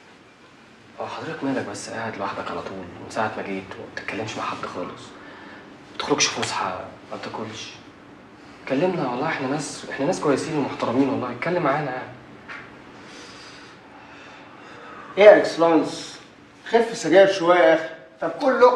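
Men talk with each other calmly nearby.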